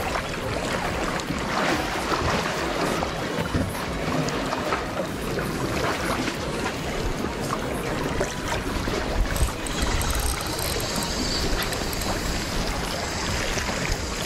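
Waves lap against rocks nearby.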